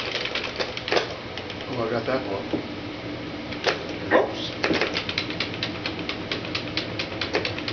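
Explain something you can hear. A man speaks calmly through a television speaker.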